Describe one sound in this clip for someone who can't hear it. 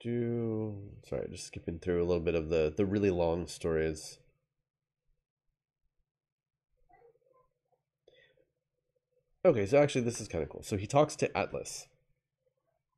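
A man reads aloud close to a microphone, with animation.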